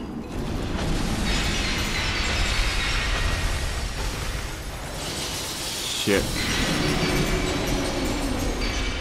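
A blast of icy wind hisses and roars.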